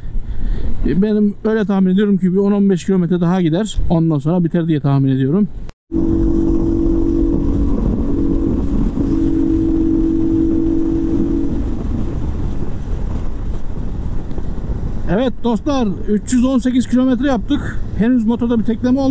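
A motorcycle engine revs up and down as it rides and shifts gears.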